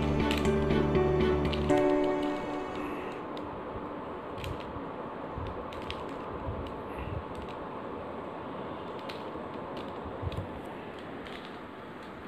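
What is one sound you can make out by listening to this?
A puzzle cube clicks and rattles as it is turned quickly.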